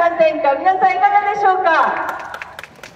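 A woman speaks with animation through a loudspeaker outdoors.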